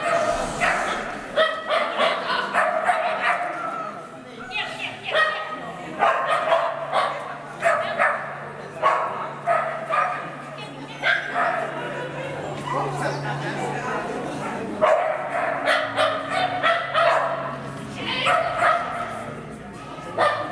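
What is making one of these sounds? A woman calls out commands to a dog in a large echoing hall.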